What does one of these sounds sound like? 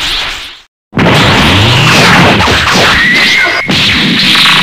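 Game fighters clash with loud punching and impact sounds.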